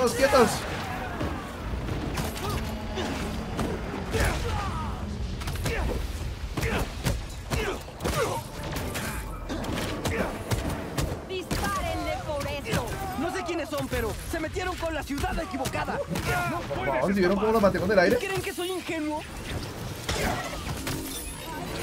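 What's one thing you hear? Punches and impacts thud in a game fight.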